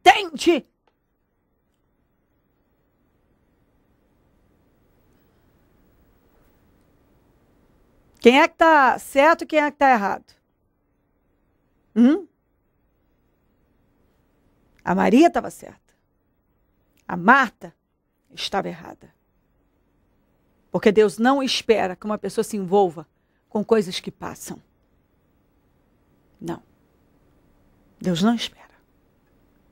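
A young woman speaks calmly and clearly into a close microphone, with pauses.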